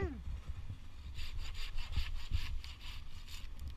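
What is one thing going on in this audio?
A hand saw cuts through a branch with quick strokes.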